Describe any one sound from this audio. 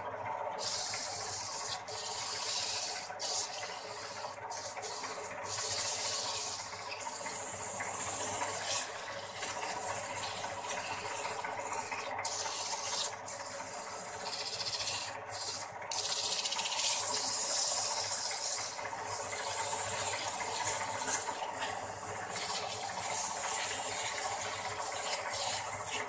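A hand sands spinning wood with a rough, hissing scrape.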